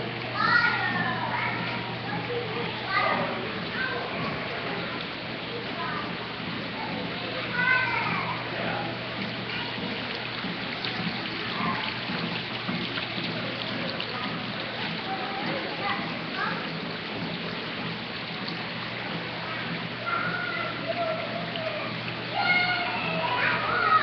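Young children call out and chatter in high voices nearby.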